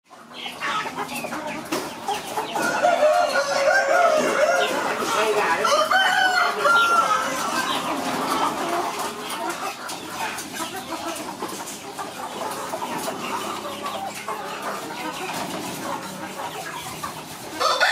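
Many chickens cluck and squawk close by.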